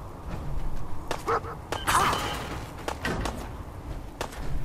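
A dog barks angrily.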